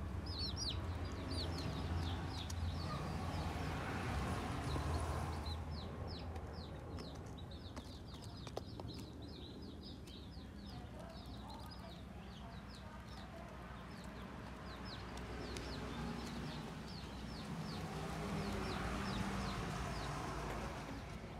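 Newly hatched chicks cheep rapidly and shrilly close by.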